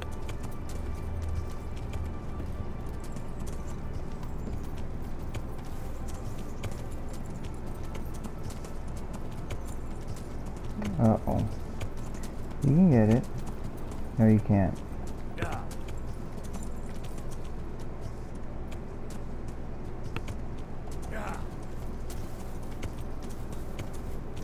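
A horse gallops steadily through tall grass.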